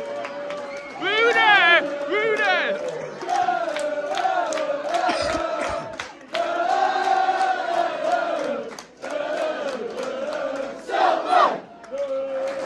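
A young man shouts loudly nearby.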